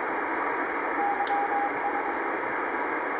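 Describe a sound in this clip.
Faint Morse code beeps come through radio static.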